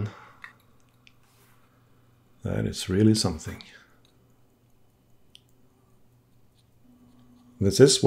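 Small metal tools tap and scrape softly on a watch.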